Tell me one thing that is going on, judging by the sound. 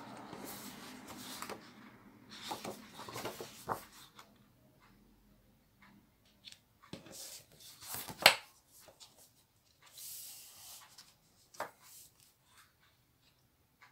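A sheet of stiff paper rustles and crackles as hands handle it.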